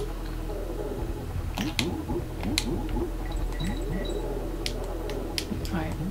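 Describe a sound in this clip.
Video game music plays with a bouncy melody.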